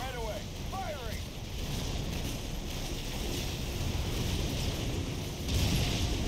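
Distant weapons fire and blasts rumble and crackle.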